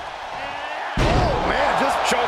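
A body slams hard onto a wrestling ring mat with a loud thud.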